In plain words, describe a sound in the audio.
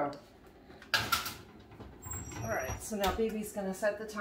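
An oven door clunks open and shut.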